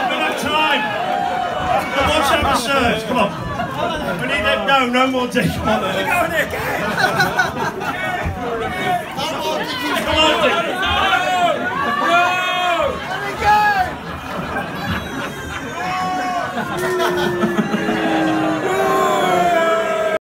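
A man raps loudly into a microphone over a loudspeaker system.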